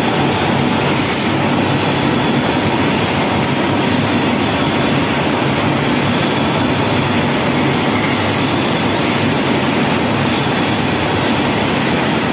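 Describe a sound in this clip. Steel bars clatter as workers drop them onto a pile.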